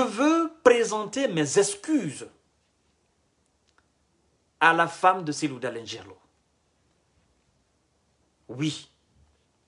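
A man speaks calmly and close to the microphone, with pauses.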